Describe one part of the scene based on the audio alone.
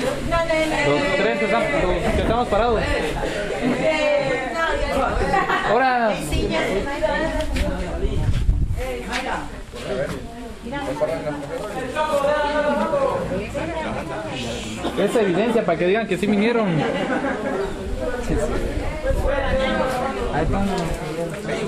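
Several young men and women chat and laugh.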